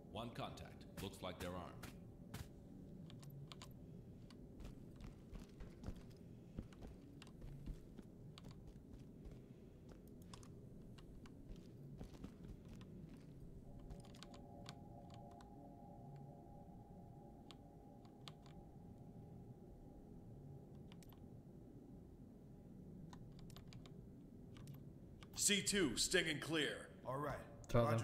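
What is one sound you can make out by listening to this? Boots step softly on a hard floor.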